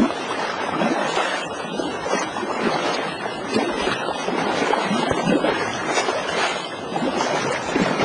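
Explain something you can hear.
A river rushes and splashes close by.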